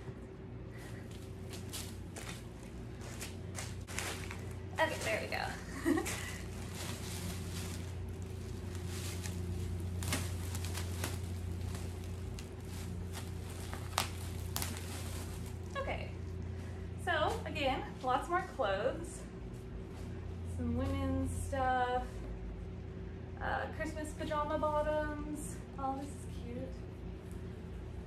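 Plastic bags and clothes rustle as they are handled.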